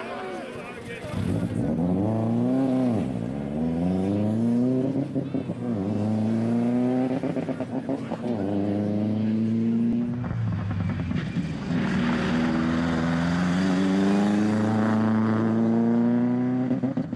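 A rally car engine revs hard and roars, rising and falling as it shifts gears.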